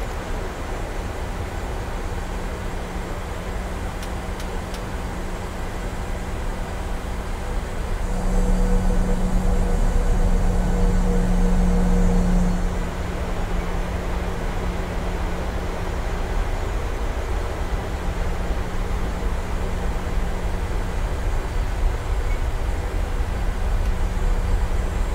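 Jet engines hum steadily as an airliner taxis.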